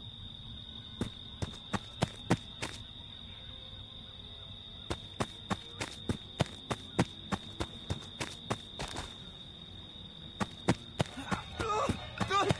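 Footsteps crunch steadily on dry leaves.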